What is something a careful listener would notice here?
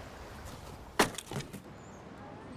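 An axe strikes wood with sharp thuds.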